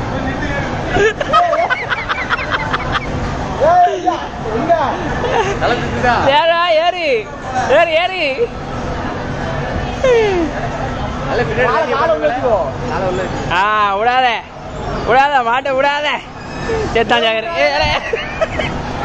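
Young men whoop and laugh loudly nearby.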